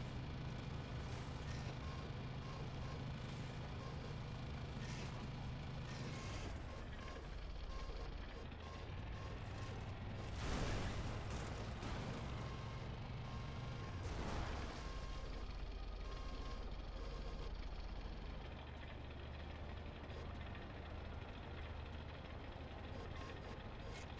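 Tank treads clank and grind over the ground.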